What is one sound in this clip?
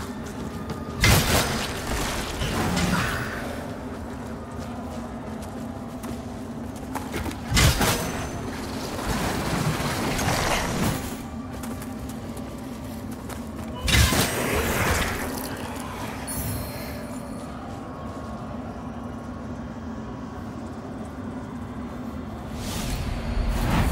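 A heavy blade swings and strikes with loud, sudden magical bursts.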